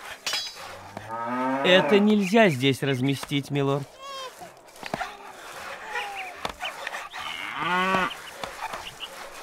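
Cattle moo loudly nearby.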